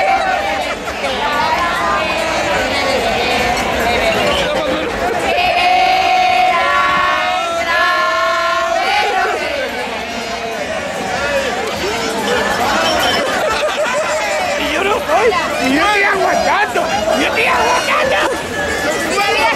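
A busy crowd murmurs outdoors.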